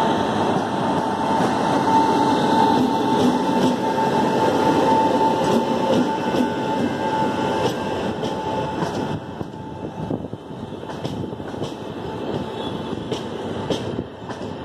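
Train wheels clack rhythmically over the rail joints.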